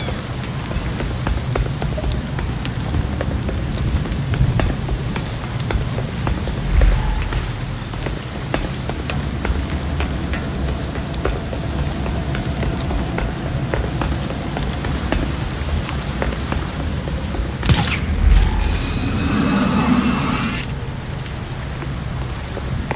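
Footsteps thud quickly on a metal walkway.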